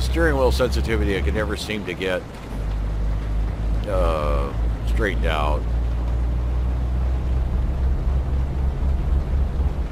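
A truck engine hums steadily at low pitch.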